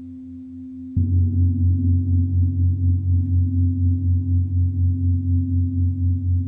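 A large gong is struck and swells into a deep, loud ringing.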